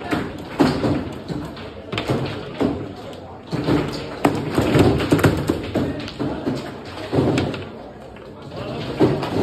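Foosball rods rattle and spin as players turn them.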